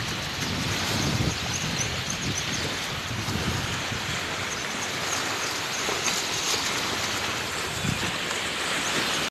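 Choppy waves slosh and lap steadily outdoors.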